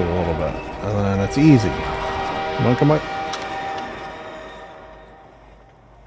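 A buggy's engine hums and then fades away.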